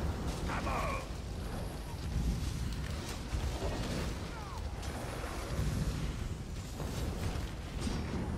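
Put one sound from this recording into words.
Magic spells crackle and blast in a busy fight.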